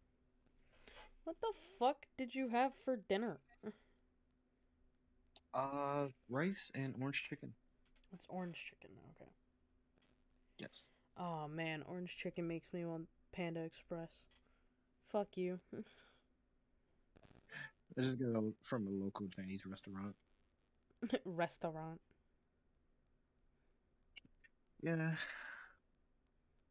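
A young woman speaks calmly and closely into a microphone, with pauses.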